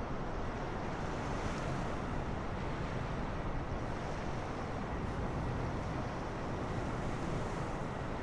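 Water rushes and sprays beneath a skimming aircraft.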